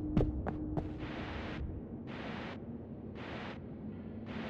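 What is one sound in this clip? A jet of air hisses in short bursts.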